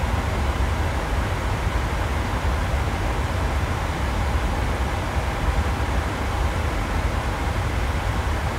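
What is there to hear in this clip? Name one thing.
Jet engines roar steadily with a low, constant rumble.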